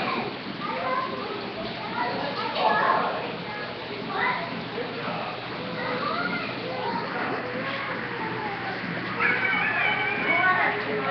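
Water splashes and trickles as a small child plays in it.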